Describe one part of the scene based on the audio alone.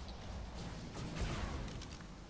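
A shimmering electronic burst rings out.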